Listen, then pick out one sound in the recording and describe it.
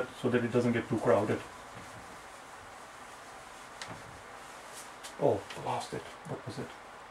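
A man speaks calmly and explains, close by.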